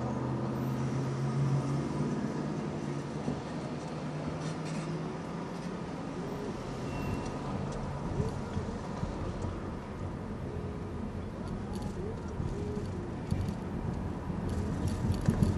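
A car engine hums steadily from inside the car as it drives along a street.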